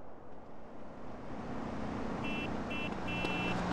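A car engine hums as it passes nearby.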